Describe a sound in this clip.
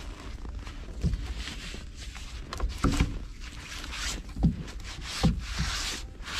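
Clumps of snow thump down onto the ground.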